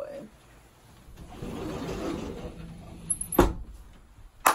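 A sofa rustles as someone shifts on it.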